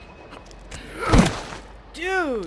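A heavy body thuds onto the ground.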